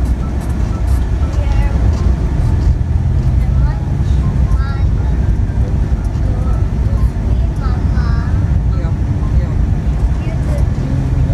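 A vehicle engine rumbles steadily from inside the cabin as it drives along a road.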